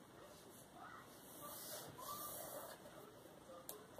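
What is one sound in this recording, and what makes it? Paper rustles as a sheet is shifted.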